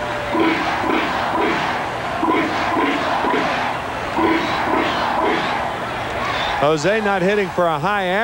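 A large crowd cheers and claps in a stadium.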